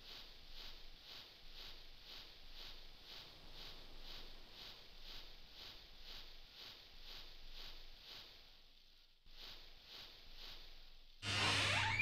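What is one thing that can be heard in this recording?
Footsteps pace steadily over soft ground.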